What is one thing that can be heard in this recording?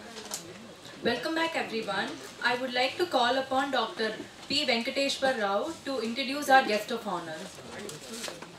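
A young woman speaks calmly into a microphone in a room with a slight echo.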